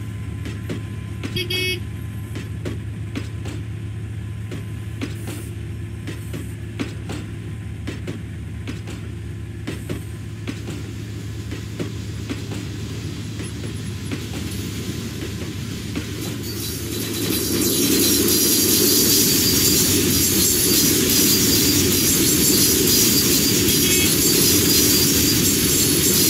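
A freight train rolls past close by with a steady rumble.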